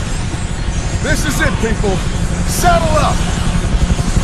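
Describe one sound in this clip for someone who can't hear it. A gruff man shouts loudly nearby.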